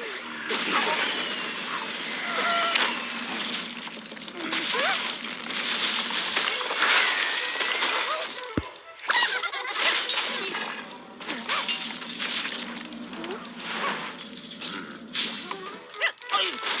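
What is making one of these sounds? Wooden blocks crash and clatter as a tower collapses.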